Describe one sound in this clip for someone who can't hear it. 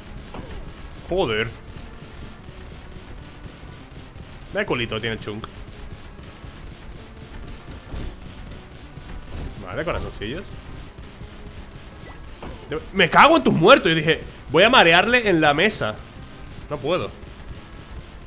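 A man speaks into a close microphone in short, lively bursts.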